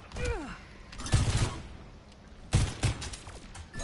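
Gunfire bursts from a game weapon.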